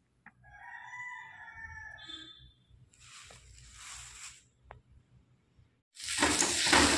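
Dry leaves rustle as a hand stirs them.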